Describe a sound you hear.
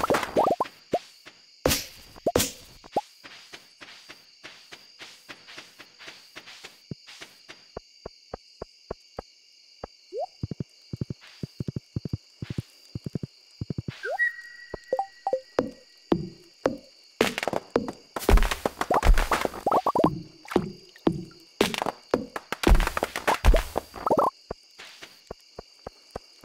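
Quick footsteps tap steadily on the ground.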